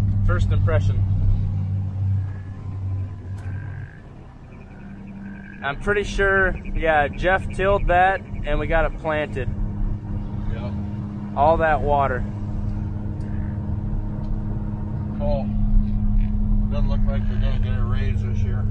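A vehicle engine hums steadily from inside the cab.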